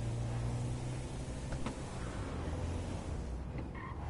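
A van's rear door swings open with a clunk.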